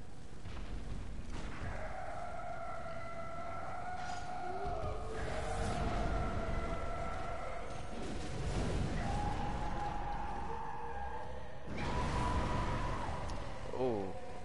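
A monstrous creature roars and shrieks with long, wavering cries.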